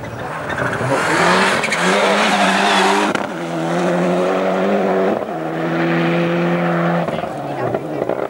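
A rally car engine roars past at high revs, shifting gears.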